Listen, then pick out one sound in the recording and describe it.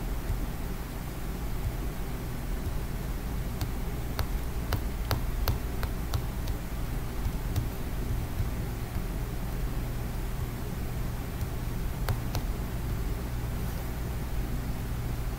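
A young man speaks quietly, close to a computer microphone.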